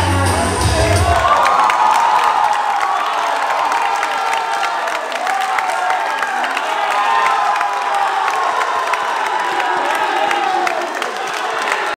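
A group of young people sing together in an echoing hall.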